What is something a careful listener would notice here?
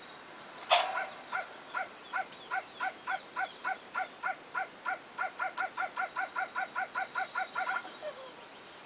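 A stone skips across water with a chime at each bounce, the chimes coming faster and faster.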